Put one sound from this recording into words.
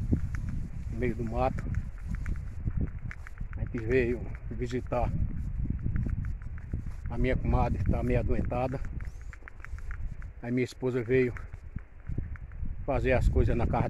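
A middle-aged man talks calmly close to the microphone.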